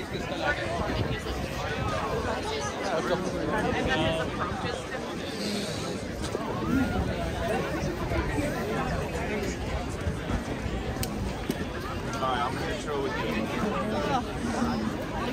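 A dense crowd of men and women chatters all around, outdoors.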